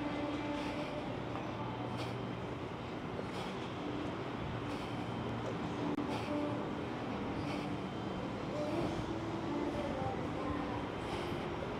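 Footsteps go down stairs.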